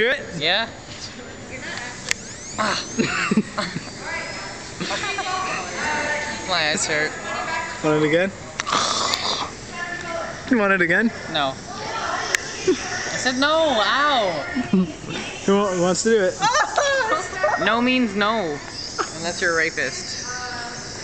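A teenage boy talks and laughs close to the microphone.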